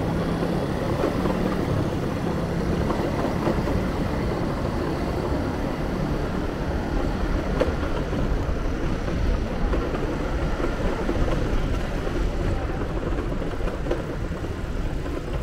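A low rumble of town traffic runs steadily throughout.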